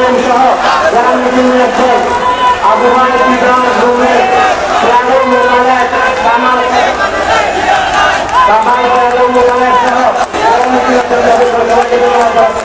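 Many men talk and shout over one another nearby.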